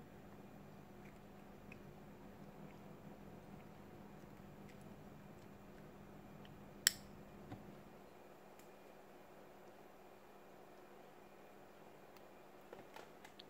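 Metal pliers click and tap against a small plastic part.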